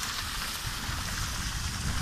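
Water splashes as a net is emptied onto the bank.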